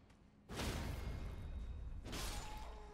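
A sword slashes through the air with a loud whoosh.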